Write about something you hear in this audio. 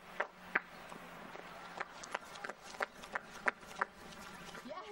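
Footsteps hurry quickly on a hard path.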